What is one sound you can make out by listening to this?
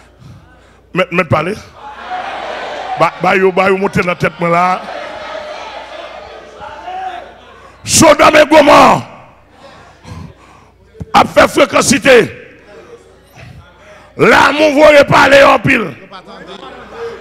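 A man preaches loudly and with passion through a microphone in an echoing hall.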